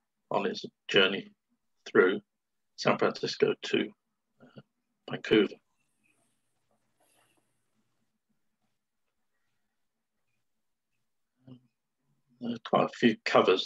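A man talks calmly through an online call, pausing between phrases.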